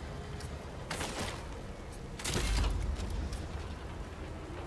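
A deep whooshing crafting effect swells and fades.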